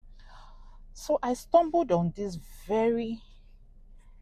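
A young woman speaks calmly and close to a clip-on microphone.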